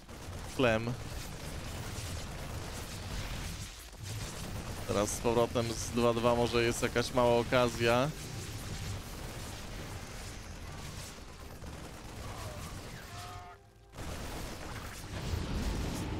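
Rapid gunfire and explosions crackle in a battle.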